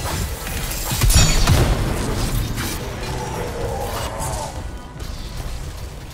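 Electric energy crackles and zaps.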